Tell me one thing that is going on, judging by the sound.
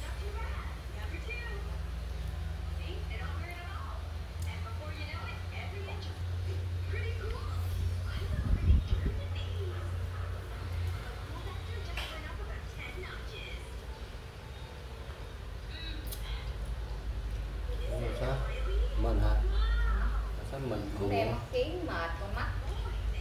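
Young children chatter close by.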